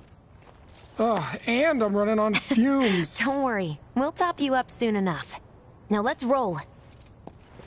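A young woman speaks reassuringly.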